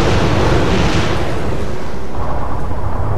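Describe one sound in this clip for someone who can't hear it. Rockets roar loudly as they launch.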